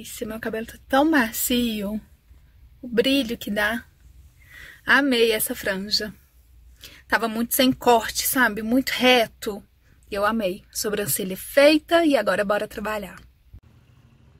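A woman talks up close, with animation.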